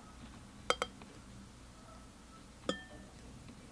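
A glass pot lid knocks against a pot.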